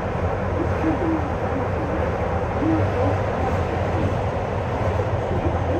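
A train rumbles steadily through a tunnel.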